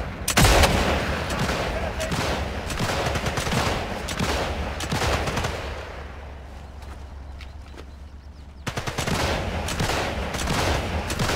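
Footsteps crunch over gravel and leaves.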